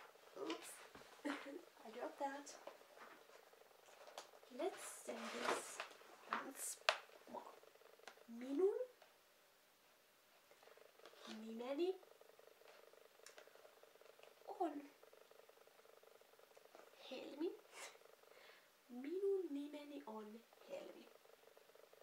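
A young girl speaks close by, slowly and clearly.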